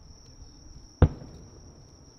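A distant firework bursts with a loud boom.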